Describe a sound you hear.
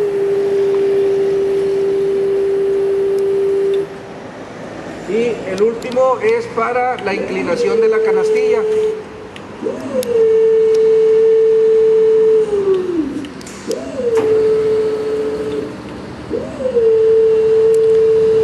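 An electric hydraulic motor whines steadily, its pitch rising and dropping as the lift arm starts and stops.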